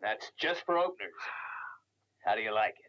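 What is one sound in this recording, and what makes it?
A man groans in strain close by.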